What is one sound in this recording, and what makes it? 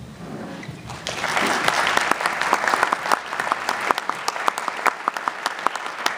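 An audience applauds and claps.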